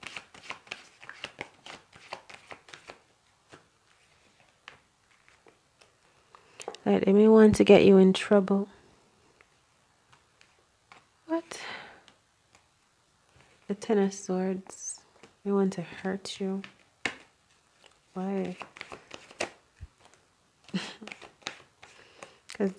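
Playing cards are shuffled with quick, crisp flicks.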